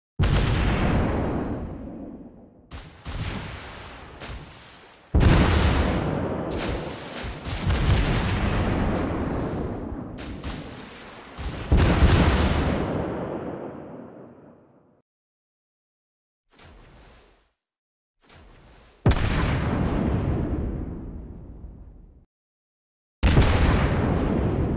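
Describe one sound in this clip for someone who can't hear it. Heavy naval guns fire in loud booming bursts that rumble and fade.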